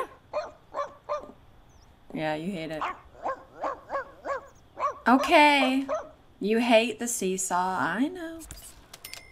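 A dog barks and howls repeatedly.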